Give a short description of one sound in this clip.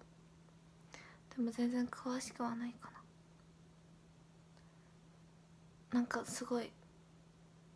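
A young woman speaks softly and close to a microphone, in short bursts.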